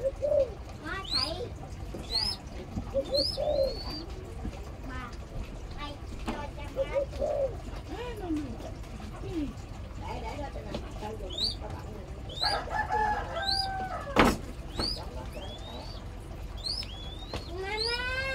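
A young hawk gives shrill, rising screeching cries again and again, close by.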